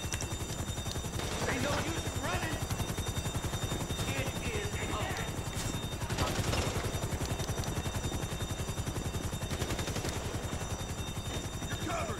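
A helicopter's rotor thumps steadily nearby.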